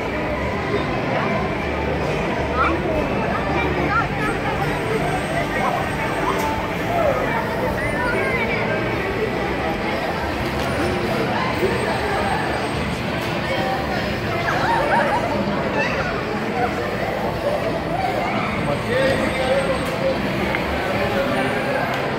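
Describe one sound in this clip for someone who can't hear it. A crowd chatters and echoes in a large indoor hall.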